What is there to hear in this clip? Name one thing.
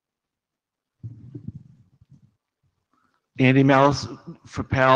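An older man speaks into a microphone, heard through loudspeakers in a large room.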